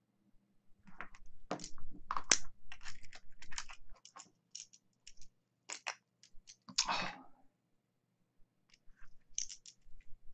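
Metal cable plugs click and rattle as they are handled.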